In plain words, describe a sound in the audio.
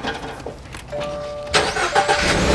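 A car's warning chime beeps briefly.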